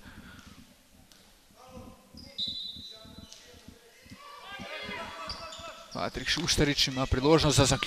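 A basketball bounces on a hard court floor.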